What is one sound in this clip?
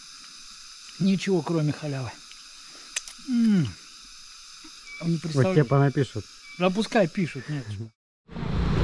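An elderly man speaks with animation close by.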